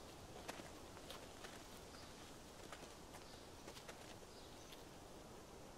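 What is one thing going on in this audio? Footsteps crunch softly on a path outdoors.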